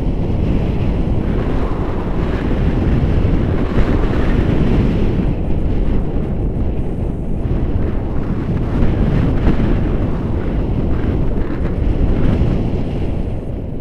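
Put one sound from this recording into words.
Strong wind rushes and buffets loudly, outdoors in flight.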